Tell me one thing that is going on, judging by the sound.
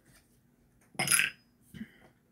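A small plastic bottle rattles and clicks as it is handled.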